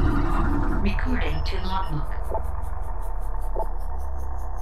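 Short electronic blips chirp from a game menu.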